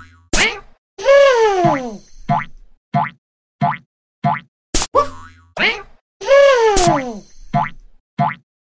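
A cartoon elephant trumpets loudly with a falling call.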